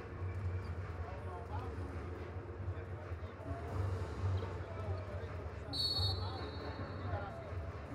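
A large crowd murmurs and chatters in a big echoing arena.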